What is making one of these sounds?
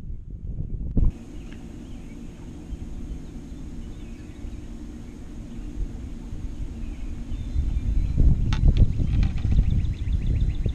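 An electric boat motor hums steadily.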